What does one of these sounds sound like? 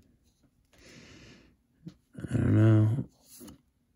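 Playing cards rustle and slide against each other in a hand.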